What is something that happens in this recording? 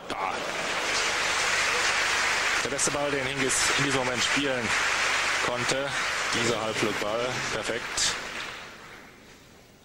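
A crowd applauds loudly in a large hall, then the applause fades.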